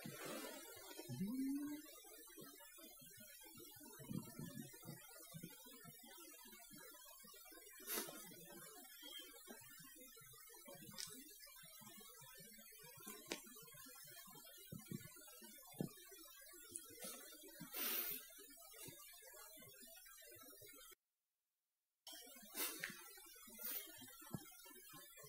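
A cat purrs softly close by.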